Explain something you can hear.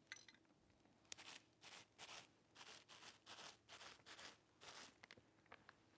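A cloth wipes and rubs across a hard surface.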